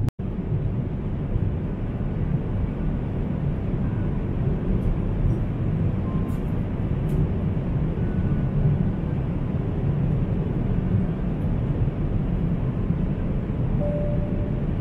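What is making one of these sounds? A jet airliner cabin hums with a steady, low engine roar.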